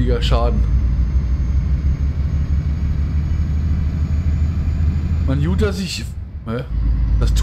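Tyres rumble on a highway.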